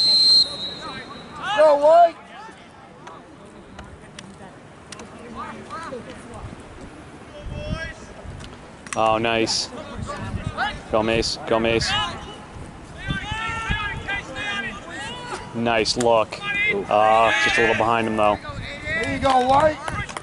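Young people shout and cheer from across an open field outdoors.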